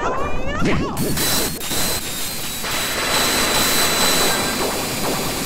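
A magical energy burst whooshes and crackles loudly.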